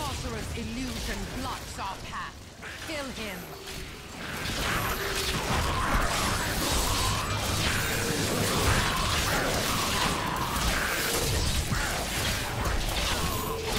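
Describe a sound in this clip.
Fiery spells blast and crackle amid clashing combat.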